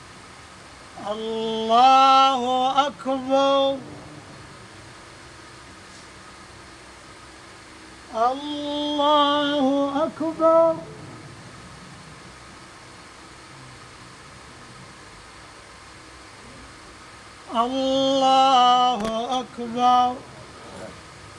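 A man chants through a loudspeaker, echoing in a large hall.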